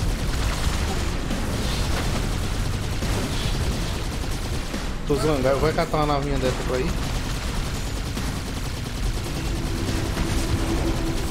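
Plasma weapons fire in rapid bursts.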